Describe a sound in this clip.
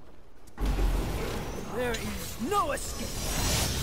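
A sword whooshes through the air in quick slashes.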